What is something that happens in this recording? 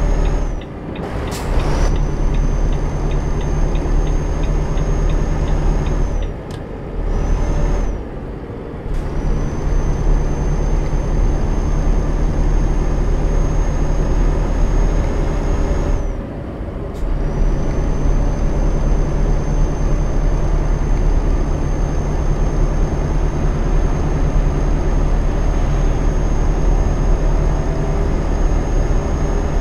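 A dashboard indicator clicks rapidly.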